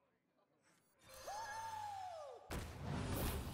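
A magical whoosh and shimmer sound as a card is played.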